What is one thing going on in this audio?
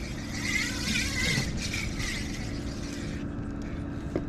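A fishing reel whirs softly as its handle turns.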